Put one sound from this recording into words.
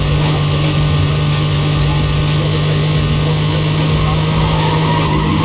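A racing car engine roars steadily at high speed.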